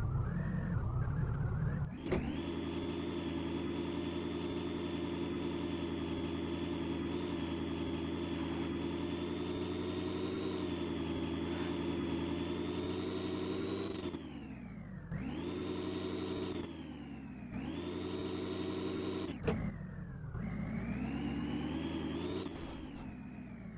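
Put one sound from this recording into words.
A vehicle engine revs loudly, its pitch rising and falling as it climbs.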